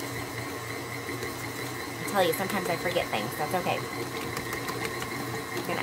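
A stand mixer whirs steadily.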